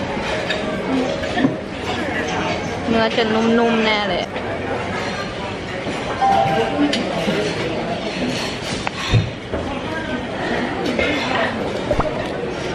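A young woman talks close by, in a lively way.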